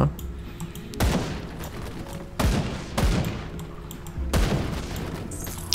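Heavy magic blasts boom and crackle several times.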